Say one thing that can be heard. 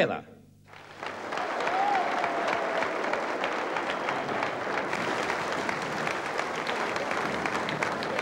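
A large crowd applauds and cheers in a big hall.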